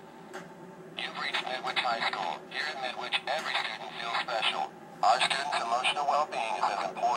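A recorded voice speaks calmly through a phone.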